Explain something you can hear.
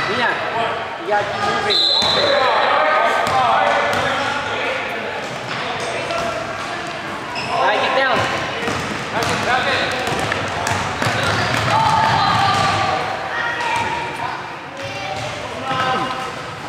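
A crowd of children and adults shout and cheer in a large echoing gym.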